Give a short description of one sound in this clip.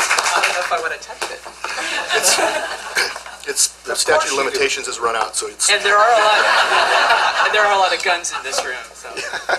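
A man speaks casually into a microphone.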